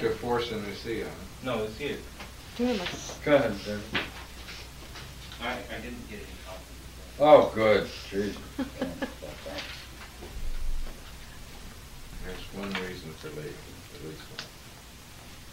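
An older man talks calmly and thoughtfully nearby.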